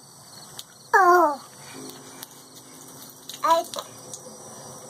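A toddler squeals loudly nearby.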